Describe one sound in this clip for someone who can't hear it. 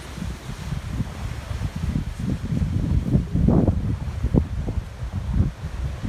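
Waves break on rocks in the distance.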